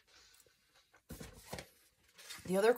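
A cardboard box rustles.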